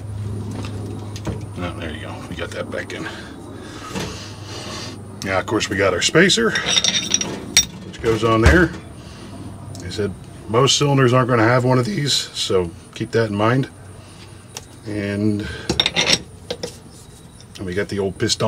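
Metal parts clink and knock together on a work surface.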